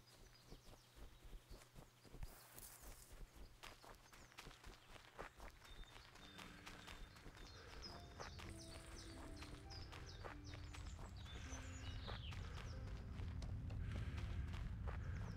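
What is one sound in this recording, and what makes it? Footsteps rush through grass and undergrowth.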